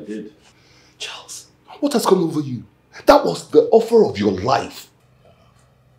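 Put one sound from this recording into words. A middle-aged man speaks with animation, close by.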